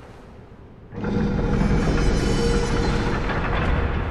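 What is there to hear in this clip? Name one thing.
A heavy stone mechanism rumbles and grinds loudly.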